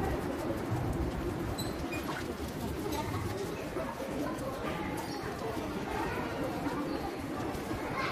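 Suitcase wheels roll across a hard floor.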